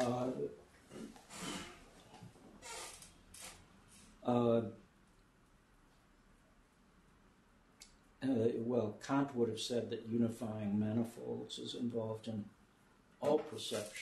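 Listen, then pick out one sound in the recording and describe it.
An elderly man speaks calmly, with pauses.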